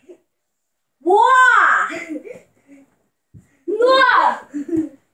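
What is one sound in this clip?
A young boy shouts and squeals loudly close by.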